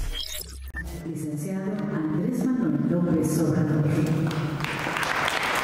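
A man announces over a loudspeaker in a large echoing hall.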